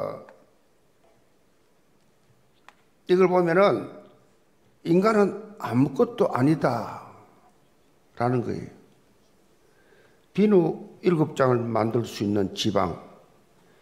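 An elderly man speaks slowly and earnestly into a microphone, in short phrases with pauses.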